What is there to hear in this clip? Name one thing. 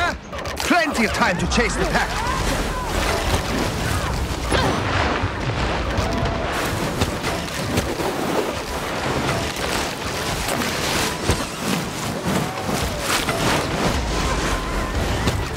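Mountain bike tyres rumble and skid over rough dirt and snow.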